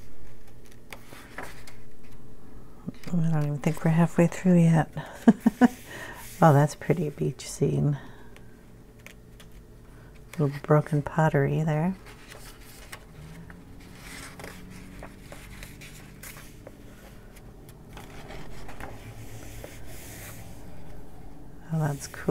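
Paper pages turn and rustle.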